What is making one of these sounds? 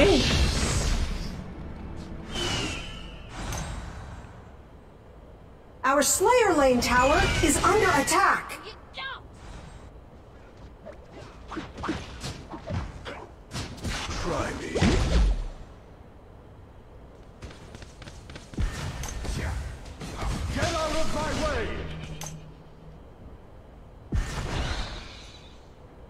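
Video game battle effects whoosh and clash.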